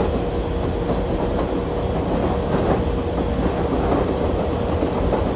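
A train engine rumbles steadily as it speeds along.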